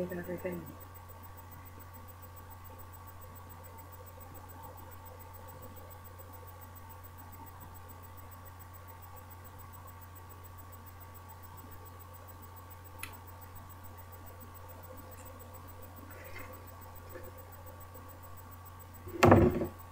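A woman speaks briefly and quietly, close to the microphone.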